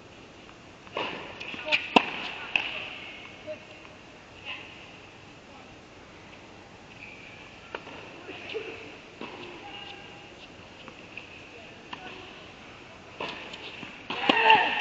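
Tennis balls are struck with rackets in a large echoing indoor hall.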